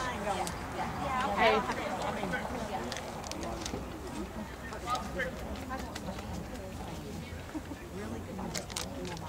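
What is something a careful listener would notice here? Young men talk casually nearby outdoors.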